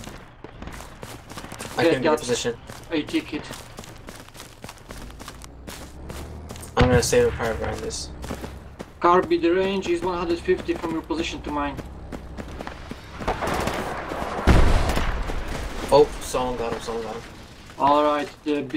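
Footsteps crunch steadily on dry grass.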